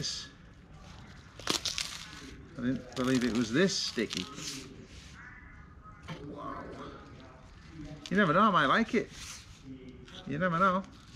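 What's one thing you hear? Dry leaves rustle and crinkle as they are folded by hand.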